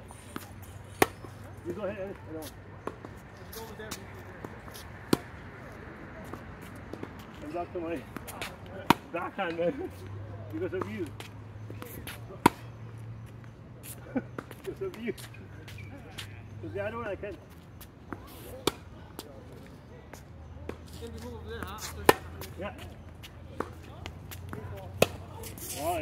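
Tennis balls are struck with sharp pops of a racket, back and forth outdoors.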